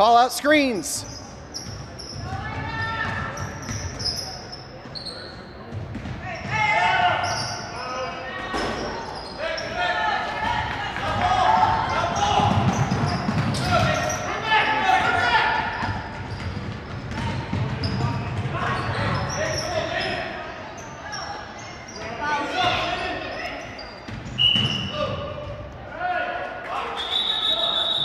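Young players and spectators shout and call out with animation in an echoing hall.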